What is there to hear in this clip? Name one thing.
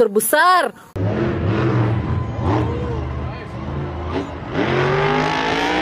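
A monster truck engine roars and revs loudly outdoors.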